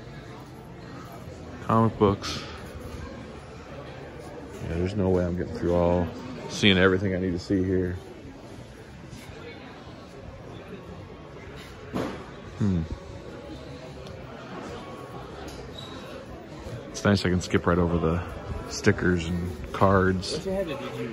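A crowd murmurs faintly in a large indoor hall.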